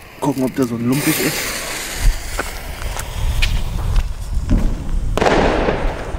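A firework fuse fizzes and sputters.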